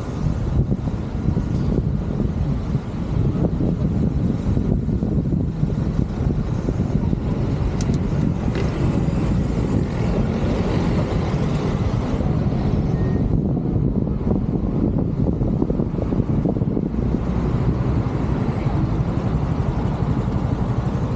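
Car engines idle and hum nearby in city traffic.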